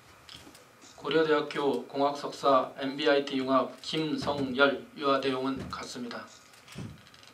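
An elderly man reads out formally.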